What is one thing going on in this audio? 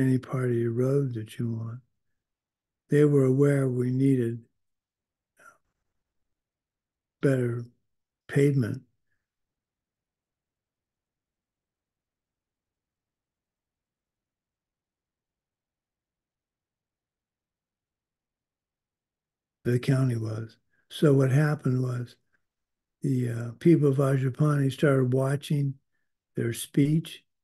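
An elderly man speaks calmly in short bursts through an online call microphone, with long pauses.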